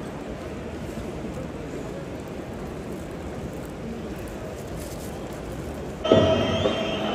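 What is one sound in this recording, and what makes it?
A large stadium crowd murmurs in a wide open space.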